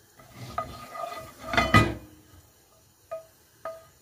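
A wooden spoon scrapes against a pan.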